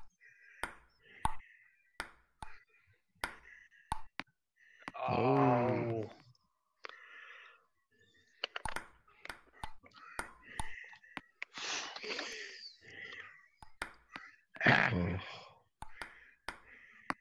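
A ping-pong ball clicks sharply on a table and paddle in a quick rally.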